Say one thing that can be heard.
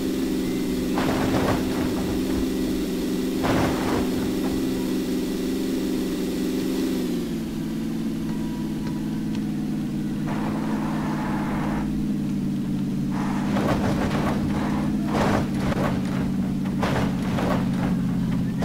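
Tyres crunch and skid over dirt and grass.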